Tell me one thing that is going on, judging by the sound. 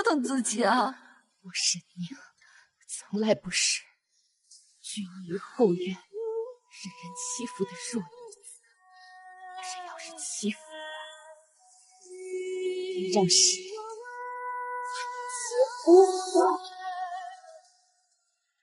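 A young woman speaks forcefully and defiantly, close by.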